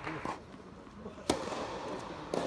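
A tennis ball is hit hard with a racket, echoing in a large indoor hall.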